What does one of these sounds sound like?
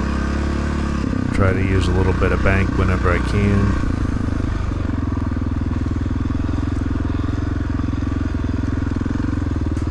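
Tyres crunch over a muddy trail.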